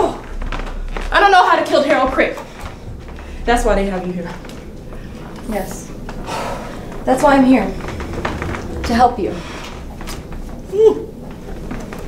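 A woman talks into a phone with animation, acting out a scene.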